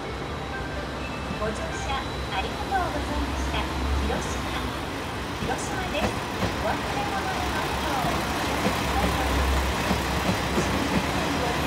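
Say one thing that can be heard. A train rumbles low as it rolls along the track.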